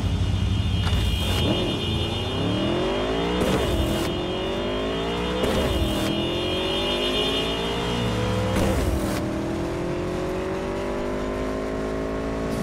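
A motorcycle engine revs up and climbs through its gears, its pitch rising again after each shift.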